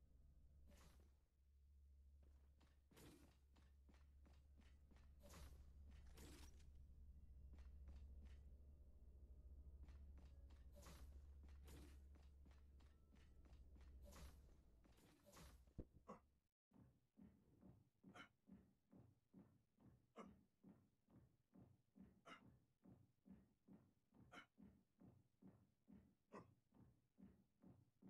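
Heavy footsteps clank on a metal floor at a steady pace.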